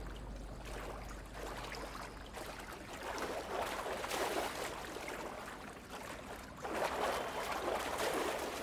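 Footsteps scuff slowly over rough, rocky ground.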